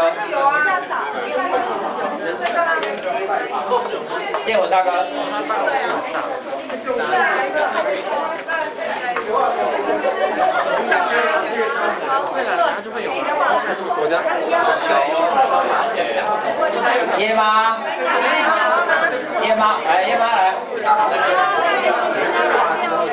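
A crowd of people chatter.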